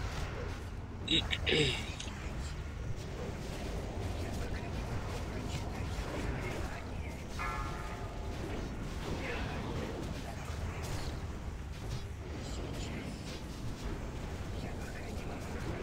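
Magic spells whoosh and crackle in a battle.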